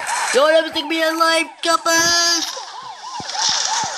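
A vehicle crashes with loud thuds and crunches.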